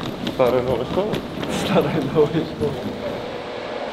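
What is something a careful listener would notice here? A suitcase rolls along a hard floor.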